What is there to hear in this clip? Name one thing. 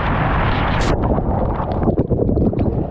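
A rider plunges into a pool with a heavy splash.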